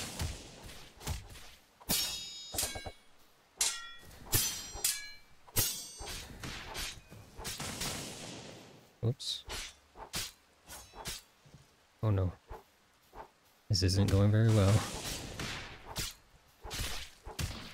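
Sword blows swish and strike in quick bursts.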